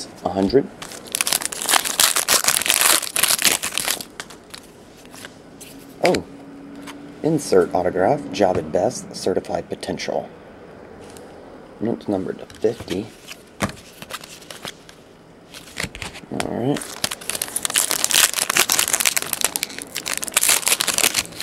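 Foil wrappers crinkle and tear as hands open card packs.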